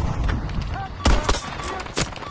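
A bolt-action rifle fires a single shot.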